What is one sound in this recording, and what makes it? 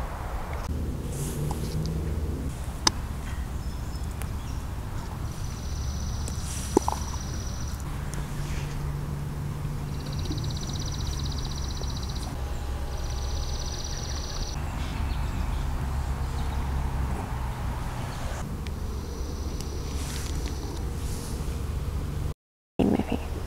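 Leaves rustle softly as a hand picks small flowers.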